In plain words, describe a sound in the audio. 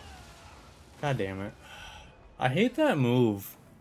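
A young man exclaims loudly and with dismay, close to a microphone.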